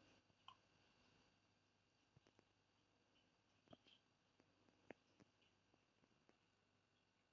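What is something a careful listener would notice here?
A spoon clinks softly against a plastic cup.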